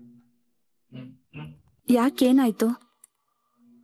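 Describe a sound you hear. A woman speaks firmly.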